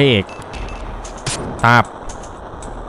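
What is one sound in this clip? Short electronic chimes and blips sound from a video game.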